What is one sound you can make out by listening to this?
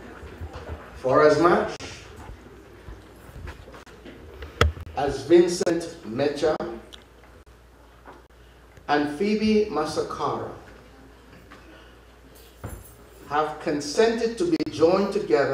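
An older man speaks calmly into a microphone in an echoing hall.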